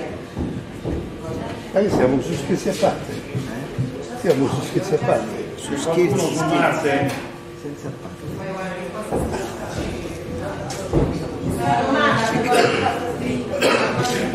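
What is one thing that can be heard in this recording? Several adults talk over one another in a room with some echo.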